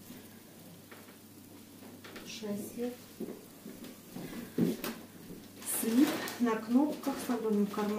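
Fabric rustles softly as clothes are handled and laid down.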